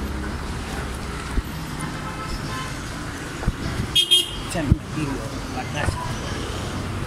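Traffic rumbles steadily along a nearby road outdoors.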